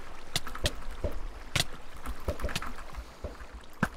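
Sword hits land with sharp clicks in a game.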